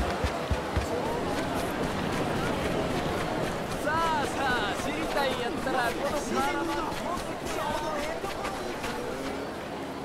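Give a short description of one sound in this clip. A crowd of men murmurs and chatters in the street.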